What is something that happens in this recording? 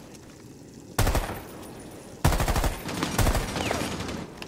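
A rifle fires several quick, loud shots.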